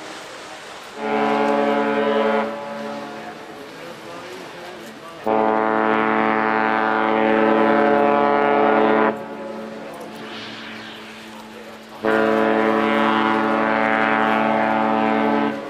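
A ship's horn blasts loudly in long, deep blows.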